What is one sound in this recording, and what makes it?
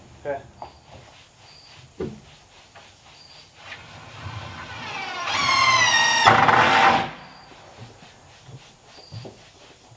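Tools knock on a wooden floor.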